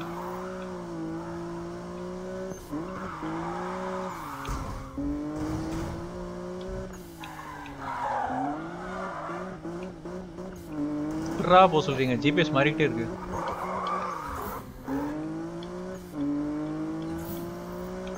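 A sports car engine roars and revs up and down through gear changes.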